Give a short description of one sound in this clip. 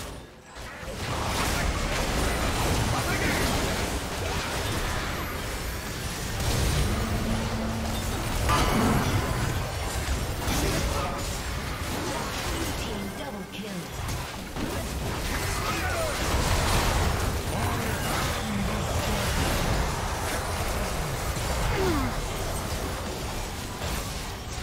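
Game spell effects whoosh, crackle and blast in a busy fight.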